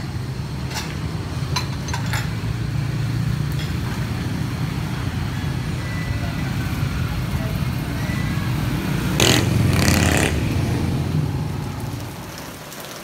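Motorbikes and cars rumble past on a nearby street.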